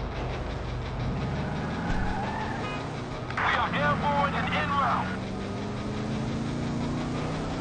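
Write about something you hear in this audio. A car engine revs and accelerates.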